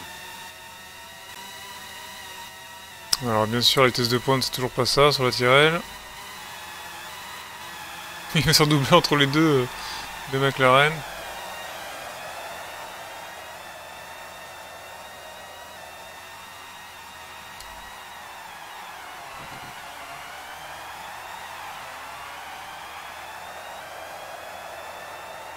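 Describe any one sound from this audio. A racing car engine whines at high revs, rising and falling as gears change.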